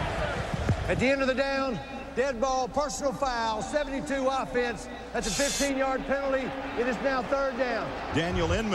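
A man announces calmly through a microphone, echoing over stadium loudspeakers.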